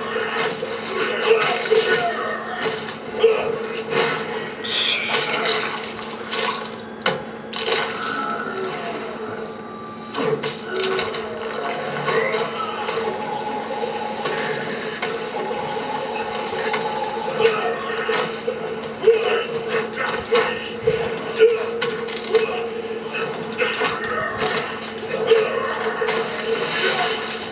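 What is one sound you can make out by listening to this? Punches and kicks land with hard thuds in a fighting game.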